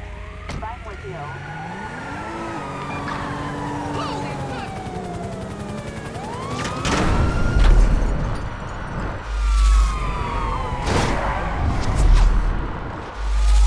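A car engine revs and roars.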